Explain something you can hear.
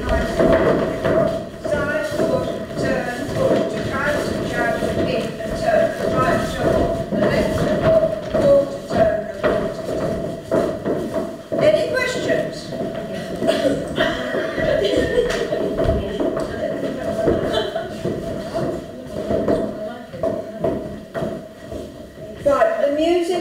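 Shoes tap and shuffle on a wooden floor.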